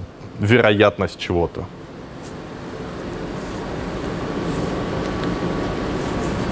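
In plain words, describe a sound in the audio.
A man speaks to an audience in a large room, heard through a microphone.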